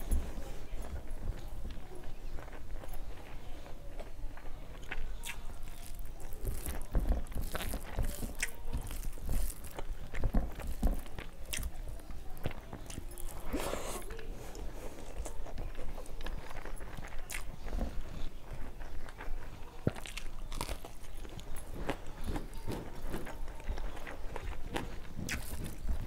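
Fingers squish and mix rice on a metal plate.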